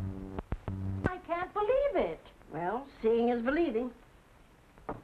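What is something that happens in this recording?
A woman speaks excitedly in a high, wavering voice.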